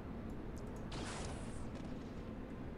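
A gun fires with a short hissing burst.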